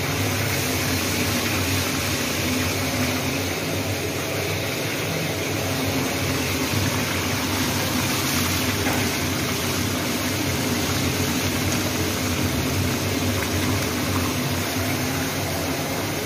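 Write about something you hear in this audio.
Hot oil sizzles and crackles steadily in a pan.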